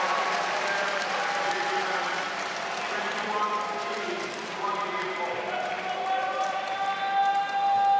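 A large crowd cheers and chatters in an echoing hall.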